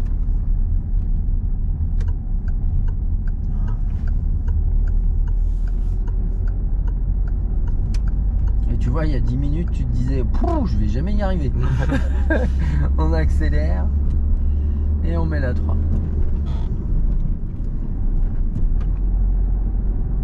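A car engine hums steadily with road rumble inside the cabin.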